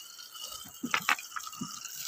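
Water sprays from a garden hose onto soil.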